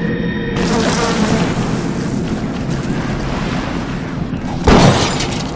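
A swarm of insects buzzes loudly.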